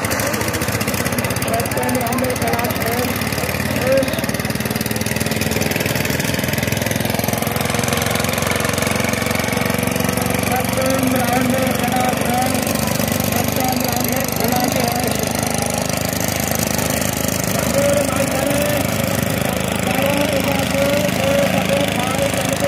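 Single-cylinder diesel power tillers chug through mud.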